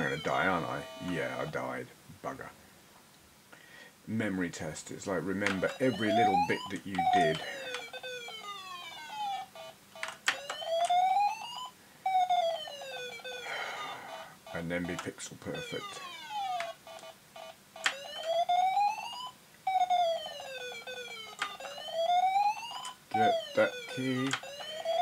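Electronic game music plays in quick, bleeping tones.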